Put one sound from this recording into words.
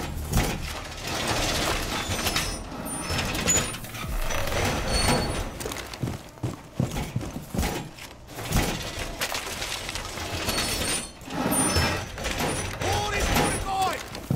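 A metal panel clanks and rattles as it is hammered into place.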